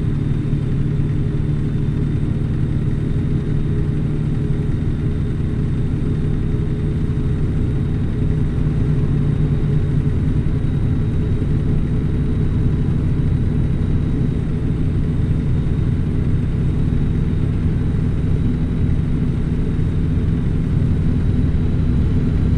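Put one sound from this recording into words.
A truck engine drones steadily in a low rumble from inside the cab.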